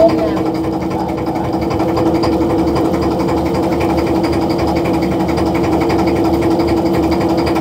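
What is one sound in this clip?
A motorised line hauler hums steadily and whirs as it pulls in a fishing net.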